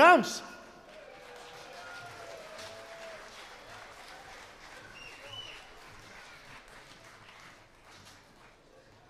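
A large crowd cheers and whistles outdoors, then the cheering fades.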